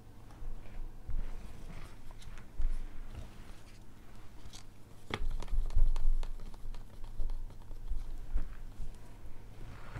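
Plastic cups clatter and tap as they are picked up and set down.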